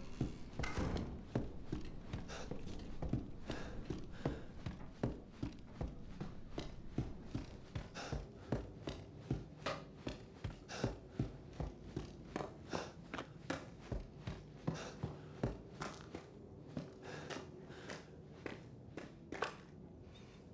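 Footsteps thud steadily on creaking wooden floors and stairs.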